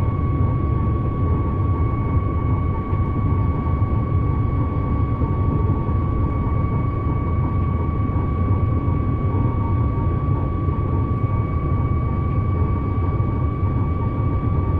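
A train rumbles steadily along the rails at speed.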